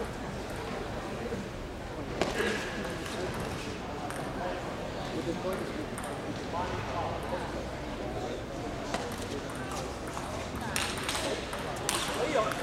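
A ping pong ball clicks sharply against paddles and the table in a rally.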